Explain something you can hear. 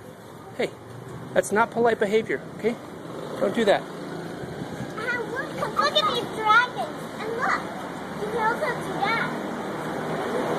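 A young boy talks and shouts excitedly close by.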